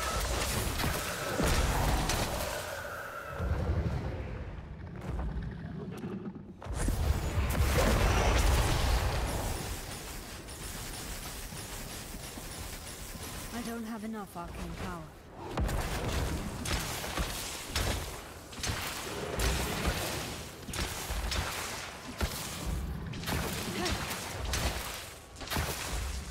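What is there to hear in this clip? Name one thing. Magic blasts and crackling hits burst again and again in a fierce fight.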